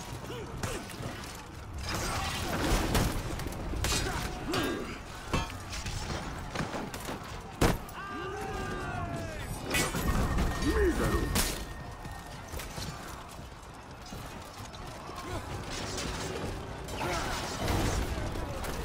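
Swords clash and clang in a chaotic melee.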